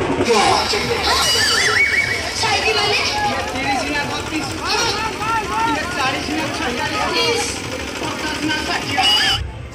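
A large crowd of people talks and calls out all around, close by.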